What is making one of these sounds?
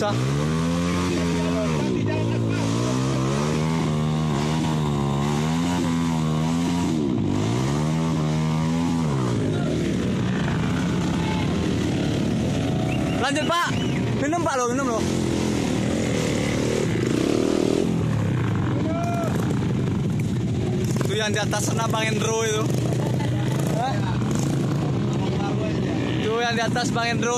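Motorcycle engines idle nearby with a steady rumble.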